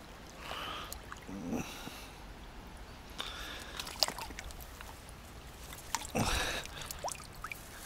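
A small fish splashes in shallow water.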